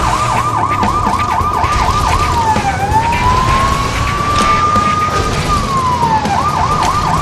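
A car engine roars as a car speeds along.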